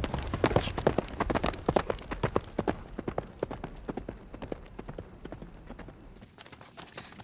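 A horse gallops, its hooves thudding on the ground.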